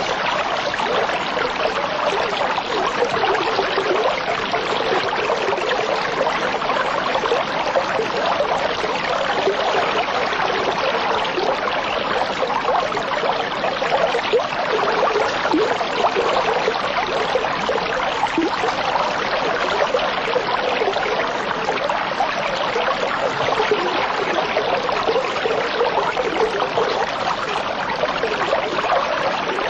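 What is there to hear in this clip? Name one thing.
Water bubbles and gurgles steadily through an aquarium filter.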